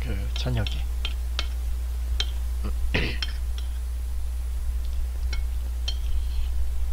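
A spoon clinks against a plate.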